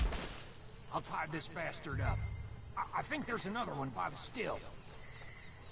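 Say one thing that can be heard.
A man grunts and groans while struggling.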